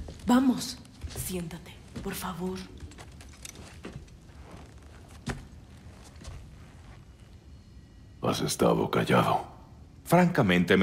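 A young man talks calmly into a microphone.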